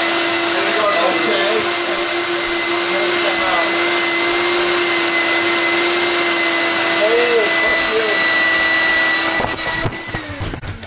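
A vacuum cleaner roars loudly and steadily close by.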